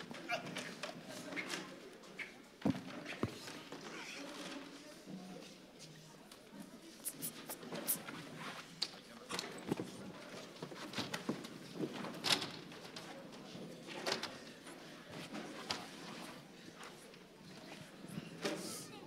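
A crowd murmurs and shouts.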